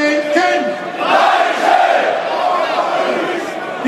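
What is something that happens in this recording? A large crowd shouts together outdoors.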